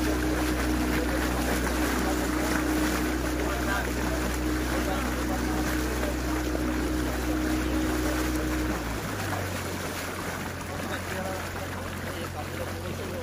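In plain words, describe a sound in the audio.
A boat's motor hums steadily, then drops in pitch.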